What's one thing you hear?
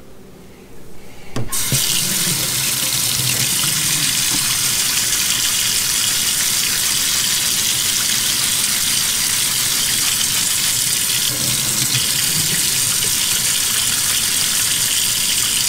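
Plastic bottle parts knock and rattle against the sink.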